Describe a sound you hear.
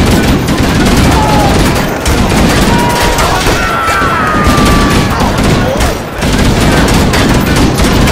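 Gunfire crackles rapidly and loudly in an echoing tunnel.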